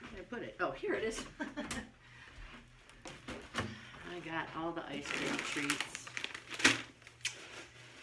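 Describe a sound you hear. A cardboard box rustles and rattles in a woman's hands.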